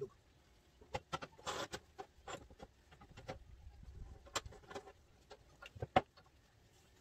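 A metal pipe clanks as it is placed in a vise.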